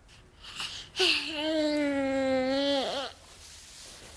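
A young woman cries out in a long, wavering moan.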